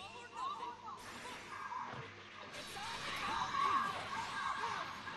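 Punches and energy blasts crash and whoosh in a fast fight.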